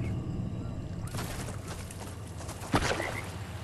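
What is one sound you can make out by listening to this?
Shallow water splashes under running feet.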